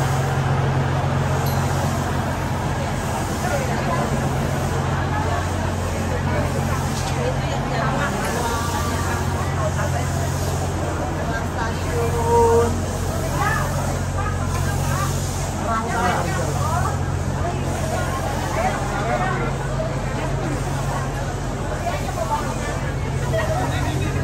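A crowd of men and women chatters all around.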